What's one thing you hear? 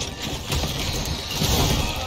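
A blast booms with a crackle of debris.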